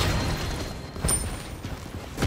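A game menu gives a short electronic chime.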